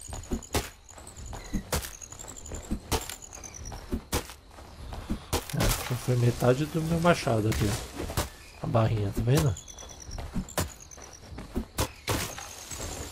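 An axe chops into wood with sharp, repeated knocks.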